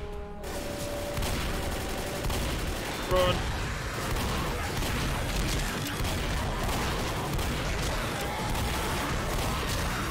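A shotgun fires again and again.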